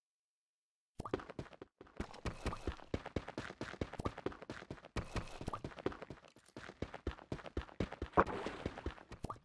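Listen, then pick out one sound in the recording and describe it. A pickaxe chips rapidly at stone.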